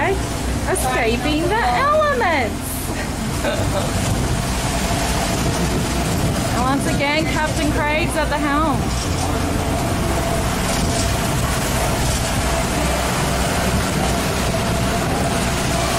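Waves rush and splash against a moving boat.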